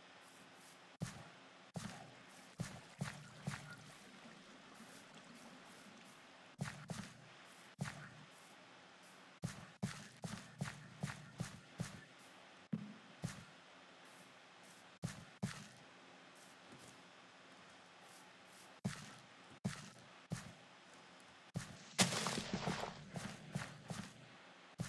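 Footsteps thud on soft ground in a quick, uneven rhythm.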